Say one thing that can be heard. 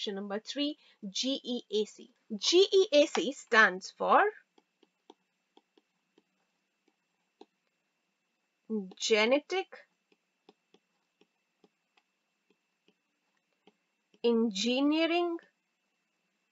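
A young woman speaks calmly into a microphone, explaining, in bursts with pauses.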